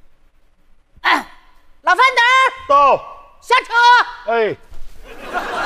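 A woman speaks loudly through a microphone on a stage.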